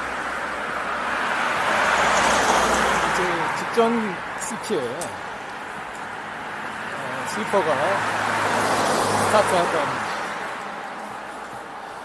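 Cars drive past close by, each swelling and fading.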